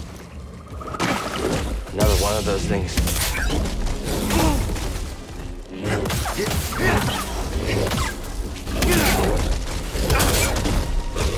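A lightsaber hums and clashes in a fight.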